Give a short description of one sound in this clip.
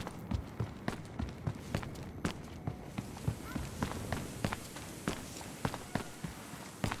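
Footsteps thud steadily on hard ground and grass.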